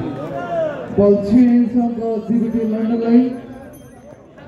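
A man commentates loudly through a loudspeaker.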